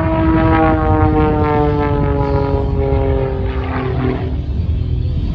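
A propeller plane's engine drones overhead, its pitch slowly falling as it passes.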